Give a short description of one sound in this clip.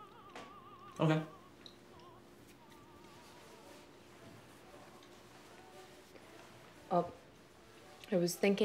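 A young woman speaks briefly and calmly nearby.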